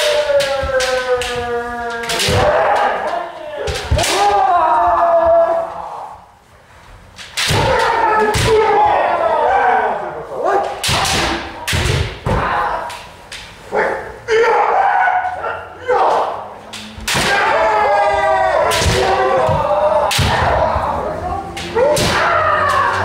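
Bamboo swords strike armour with sharp cracks.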